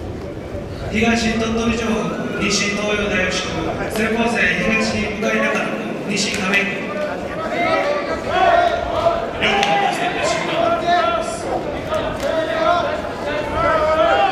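A man calls out names in a long, drawn-out chant that echoes through a large hall.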